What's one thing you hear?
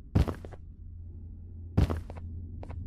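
A large creature stomps with heavy thuds.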